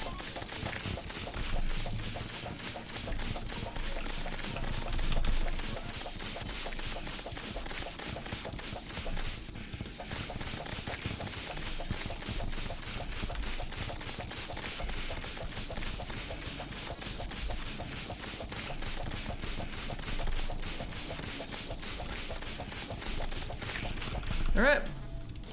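Rapid laser blasts zap and crackle.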